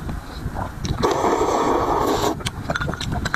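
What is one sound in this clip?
A man slurps soup from a bowl.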